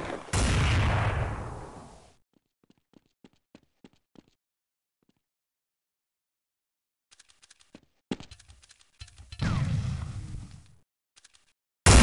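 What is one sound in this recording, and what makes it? A rifle scope clicks as it zooms.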